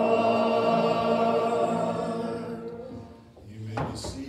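A congregation sings and holds a final note.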